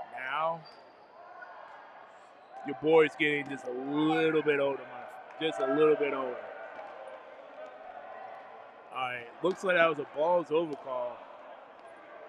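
Young men shout loudly in a large echoing hall.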